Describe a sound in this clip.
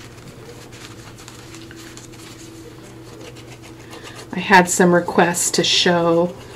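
Paper rustles softly as it is handled.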